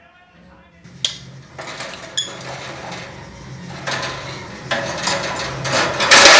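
A wire cage rattles and clinks.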